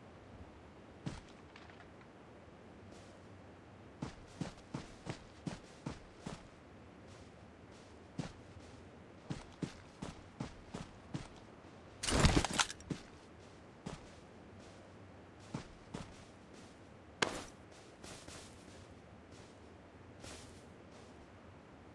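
Footsteps thud and rustle through grass at a steady pace.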